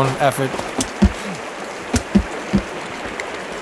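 A heavy log thuds down onto wooden boards.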